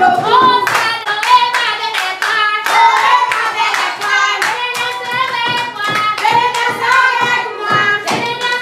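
A woman claps her hands in rhythm.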